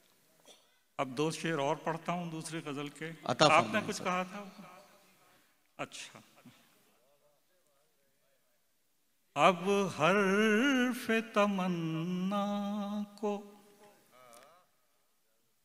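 An elderly man recites in a drawn-out, sing-song voice through a microphone in a large hall.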